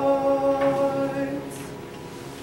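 A teenage boy sings a long held note and stops.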